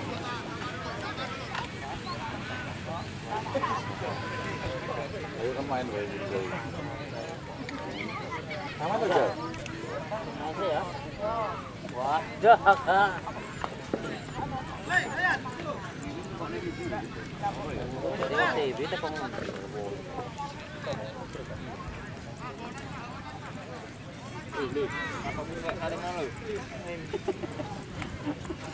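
Young men shout and call out to each other outdoors on an open field.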